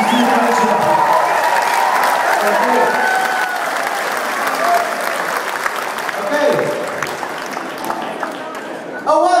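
A rock band plays live through loudspeakers in a large hall.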